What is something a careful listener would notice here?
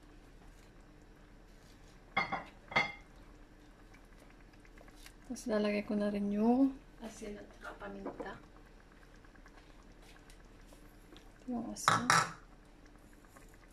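A spoon scrapes and stirs in a pan of sauce.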